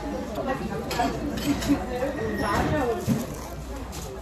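A young man bites and crunches into a crispy fried pancake.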